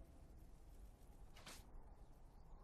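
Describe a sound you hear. Game fighting effects clash and whoosh in short bursts.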